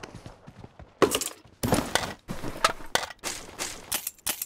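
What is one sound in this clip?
Gear rattles and clicks as items are picked up in a game.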